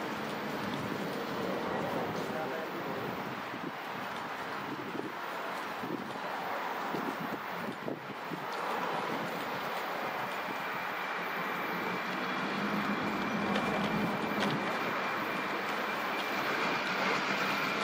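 A diesel locomotive rumbles steadily as it approaches.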